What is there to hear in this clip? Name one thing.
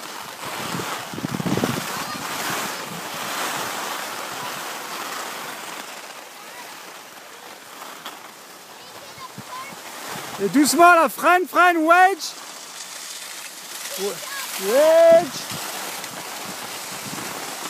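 Skis slide and scrape across groomed snow.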